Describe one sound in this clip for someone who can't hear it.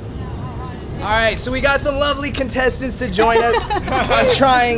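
A young man talks and laughs loudly close by.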